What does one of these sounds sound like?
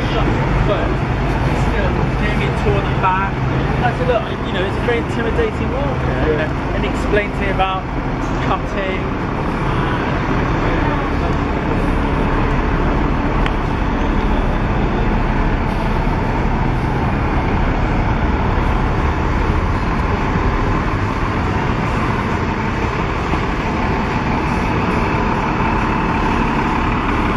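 A double-decker bus engine rumbles as the bus passes close by.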